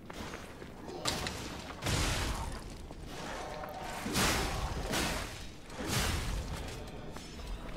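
Blades swing and strike in quick whooshing hits.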